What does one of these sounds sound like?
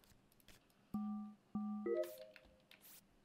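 A game's task panel beeps in short tones.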